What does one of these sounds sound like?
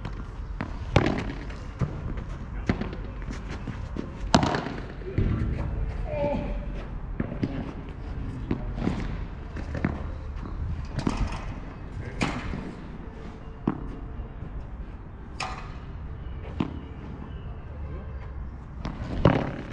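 Paddle rackets hit a ball with sharp pops, outdoors.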